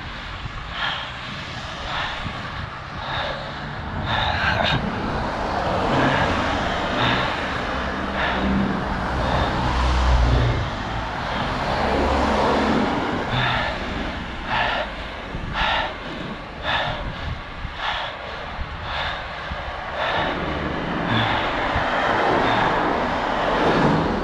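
Wind rushes steadily over the microphone while riding outdoors.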